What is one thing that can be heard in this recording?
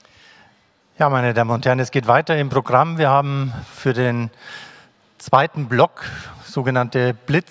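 An older man speaks calmly into a microphone over loudspeakers in a hall.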